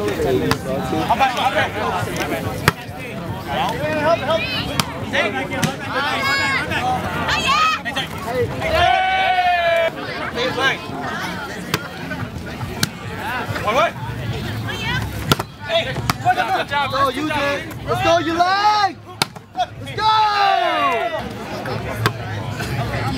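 A crowd of men and women shouts and cheers outdoors.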